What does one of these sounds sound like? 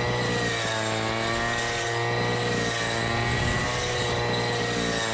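A string trimmer's engine whines steadily at high speed.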